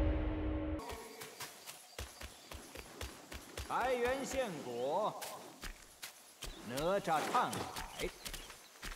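Footsteps patter quickly over stone and gravel.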